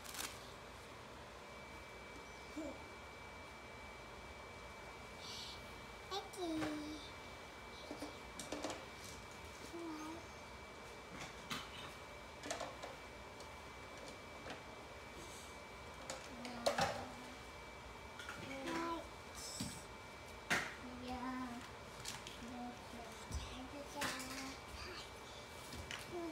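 Paper and plastic rustle and crinkle as a small child handles diapers.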